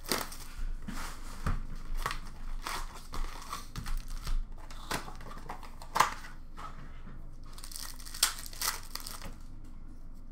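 Plastic card packs rustle and crinkle as hands handle them.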